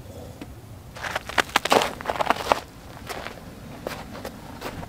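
Footsteps crunch on snow.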